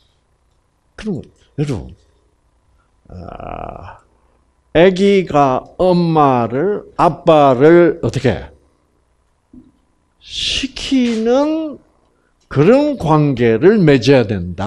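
An elderly man speaks with animation through a microphone, pausing now and then.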